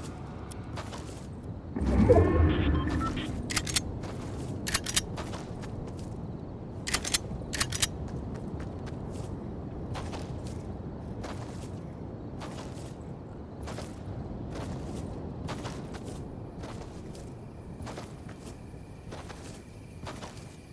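Footsteps patter quickly over dirt and grass.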